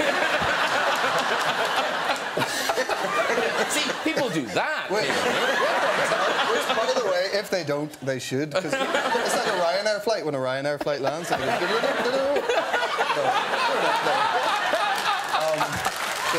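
An audience laughs loudly in a large room.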